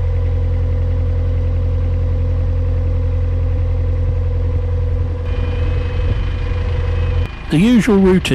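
A boat engine hums steadily at a low pitch.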